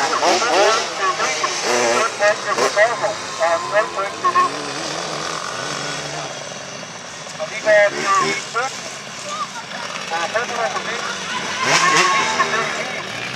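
Motorcycle engines roar in the distance.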